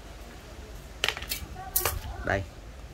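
Metal tools clink and clatter as they are handled.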